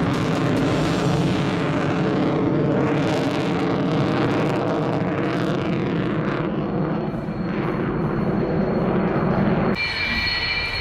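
A jet engine roars loudly overhead.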